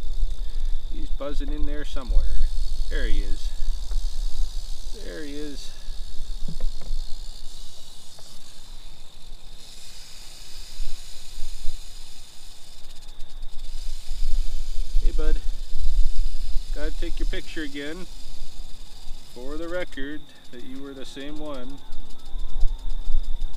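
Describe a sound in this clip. A man talks quietly close by, in short bursts.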